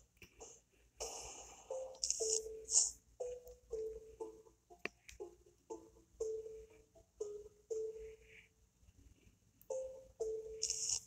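Game music plays through a small phone speaker.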